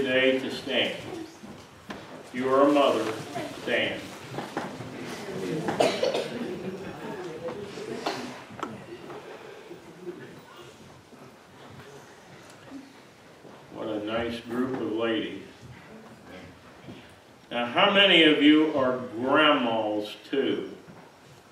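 An elderly man preaches with feeling through a microphone, his voice echoing in a large room.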